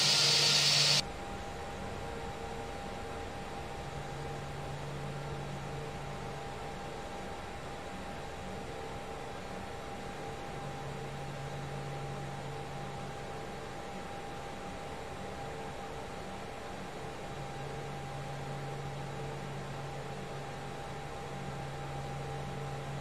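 A jet engine hums steadily, heard from inside the cockpit.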